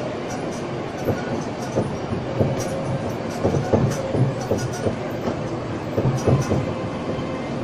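Wheels rattle and clatter over the road surface.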